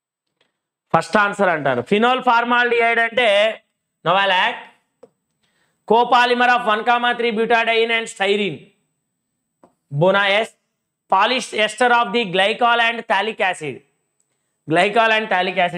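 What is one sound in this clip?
A young man explains calmly and clearly into a close microphone.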